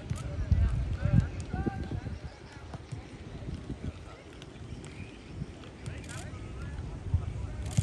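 Footballs thud as players kick them outdoors.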